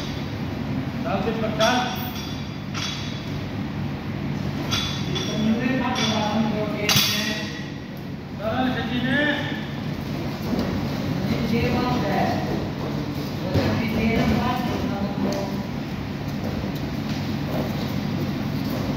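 Men call out and talk in a large echoing hall.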